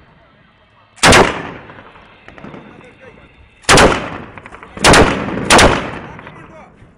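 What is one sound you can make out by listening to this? A machine gun fires loud single shots that echo outdoors.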